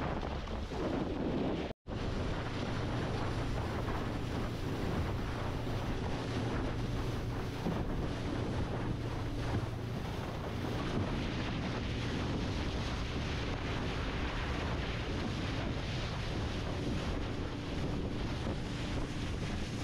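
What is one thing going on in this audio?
Wind buffets loudly across open water.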